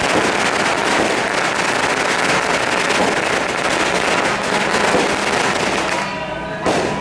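Firecrackers crackle rapidly and loudly outdoors.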